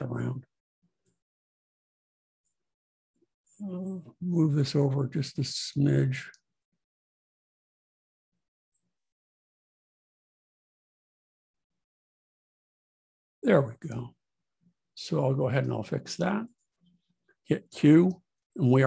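A middle-aged man talks calmly into a close microphone, with pauses.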